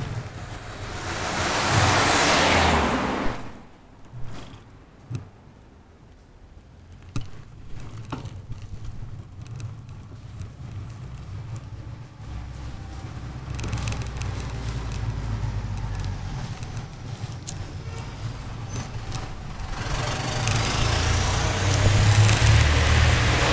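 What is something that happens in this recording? Bicycle tyres hum and rumble on asphalt.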